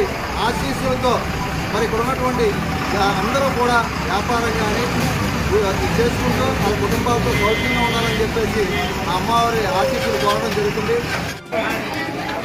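A middle-aged man speaks steadily and clearly close to a microphone.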